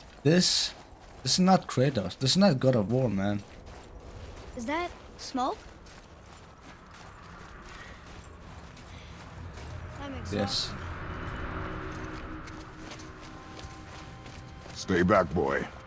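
A man speaks in a deep, gruff voice nearby.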